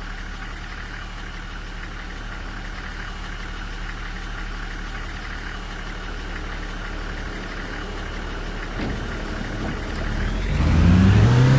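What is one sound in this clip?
A bus engine hums at idle.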